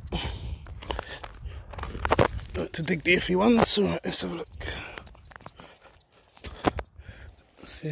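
Footsteps crunch over dry grass and dirt.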